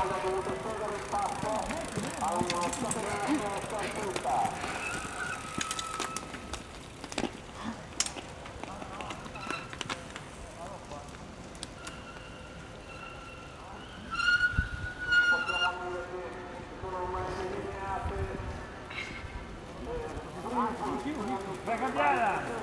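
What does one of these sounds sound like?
Cyclists run with their bikes over wet grass, their footsteps thudding.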